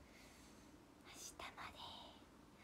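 A young woman speaks softly and briefly, close by.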